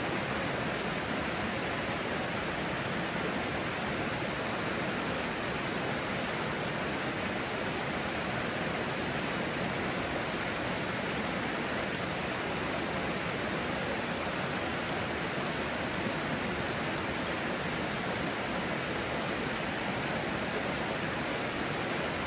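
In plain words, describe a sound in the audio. A stream rushes steadily nearby.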